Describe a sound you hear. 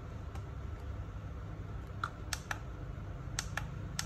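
A toy remote control clicks.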